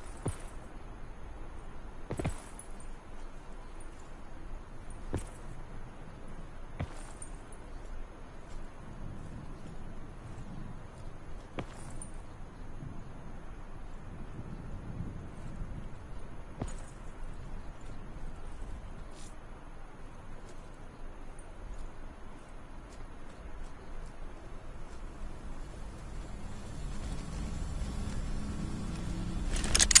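Footsteps crunch steadily on dry gravel and dirt.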